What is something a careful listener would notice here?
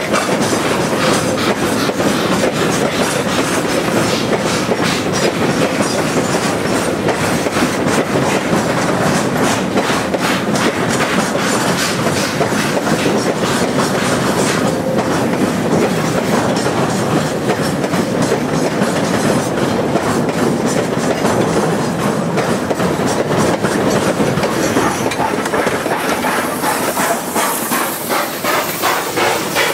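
Freight wagons rumble and clatter slowly along the rails.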